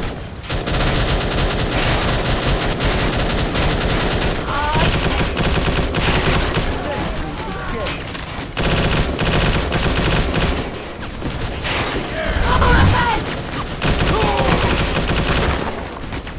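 Guns fire rapidly in a shootout.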